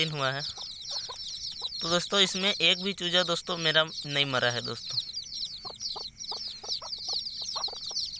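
Chicks peep constantly and shrilly close by.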